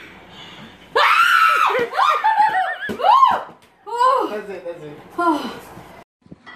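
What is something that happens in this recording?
An elderly woman shrieks and laughs.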